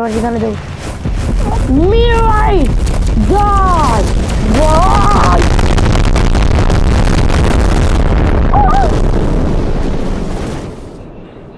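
A huge explosion booms and rumbles, then slowly dies away.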